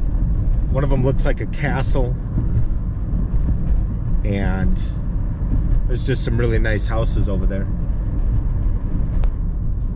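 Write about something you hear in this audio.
A car engine hums steadily with road noise from inside a moving car.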